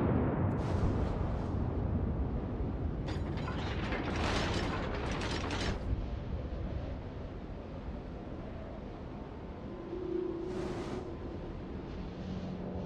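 A ship's engines rumble low and steady.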